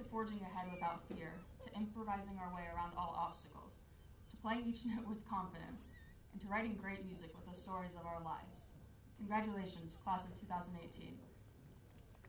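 A young woman speaks into a microphone over a loudspeaker outdoors.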